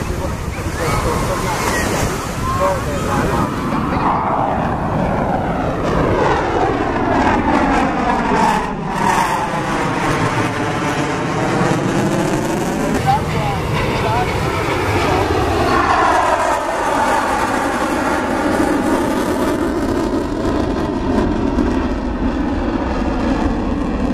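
Beach crowd voices murmur in the distance.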